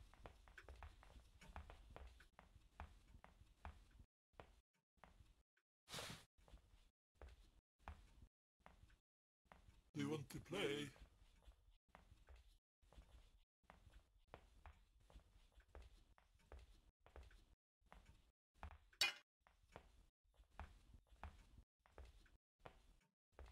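Footsteps patter quickly across a floor.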